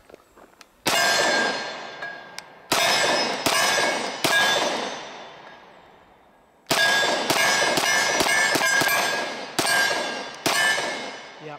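A pistol fires loud, sharp shots in quick bursts, each echoing out across open ground.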